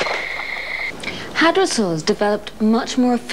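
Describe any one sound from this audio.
A woman speaks calmly and clearly to the listener, close to a microphone.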